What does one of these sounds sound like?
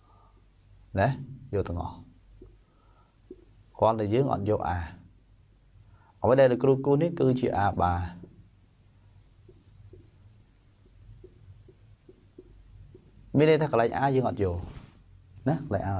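A man speaks calmly and clearly, as if explaining, close by.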